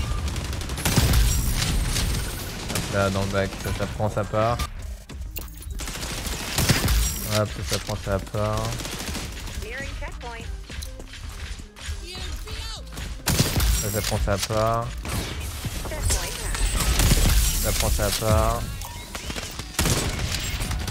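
Sniper rifle shots crack loudly.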